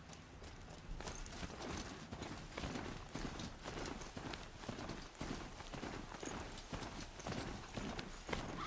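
Heavy mechanical footsteps clank along at a steady trot.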